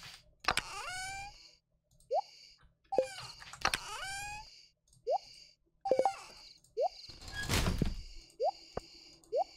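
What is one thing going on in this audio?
Short pops and chimes from a video game menu sound again and again.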